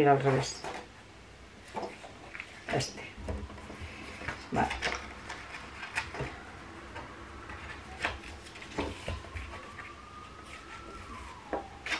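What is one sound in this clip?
Sheets of paper rustle and slide against each other as they are handled.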